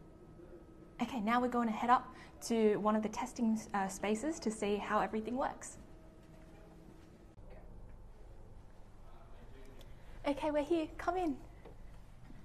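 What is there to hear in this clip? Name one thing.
A young woman speaks cheerfully, close to the microphone.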